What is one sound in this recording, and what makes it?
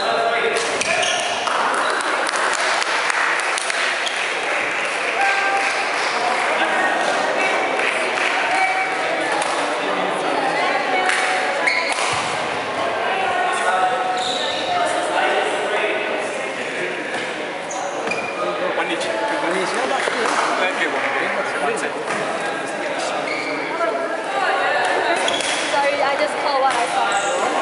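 Adults chatter and call out all through a large echoing hall.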